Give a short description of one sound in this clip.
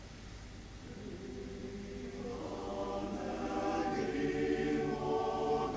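A male choir begins to sing in harmony.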